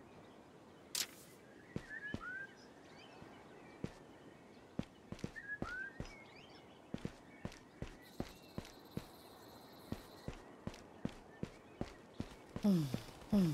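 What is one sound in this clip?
Footsteps patter on hard ground.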